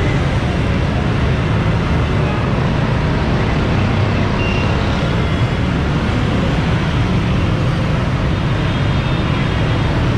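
Motorbike engines putter past.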